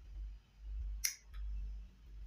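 A small metal part clicks sharply.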